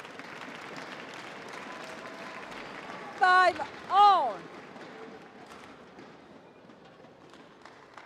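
A shuttlecock is struck sharply with rackets in an echoing hall.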